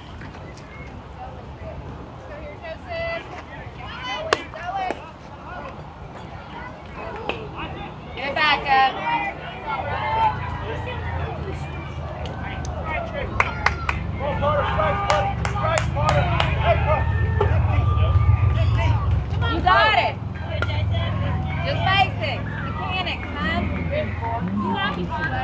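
Young players shout and cheer at a distance outdoors.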